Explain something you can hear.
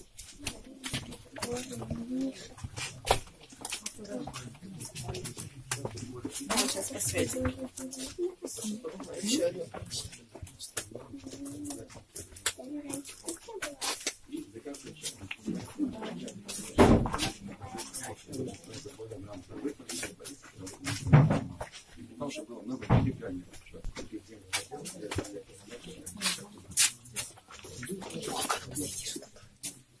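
Several adults talk quietly nearby.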